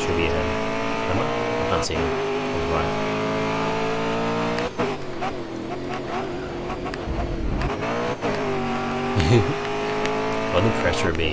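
A racing car engine roars at high revs, shifting gears as it speeds up and slows down.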